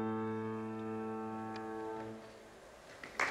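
A piano holds a final chord that rings out and fades.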